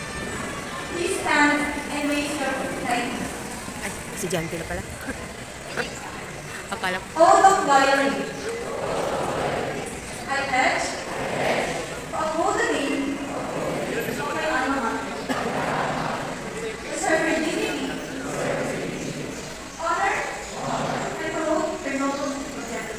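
A woman speaks steadily through a loudspeaker in a large echoing hall.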